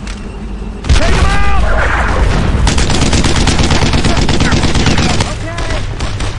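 An explosion bursts nearby with a loud roar and falling debris.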